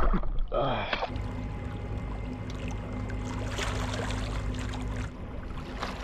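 Water splashes softly as a man swims.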